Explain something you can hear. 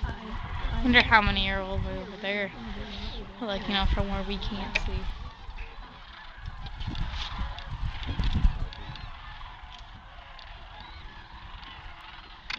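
A flock of cranes calls loudly with rolling, trumpeting cries.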